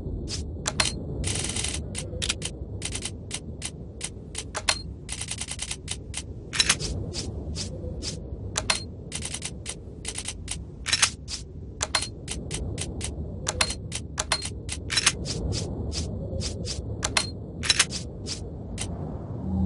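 Short electronic menu clicks tick in quick bursts.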